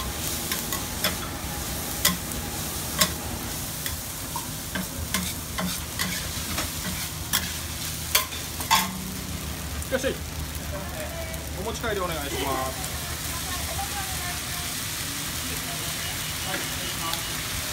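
Food sizzles steadily on a hot griddle.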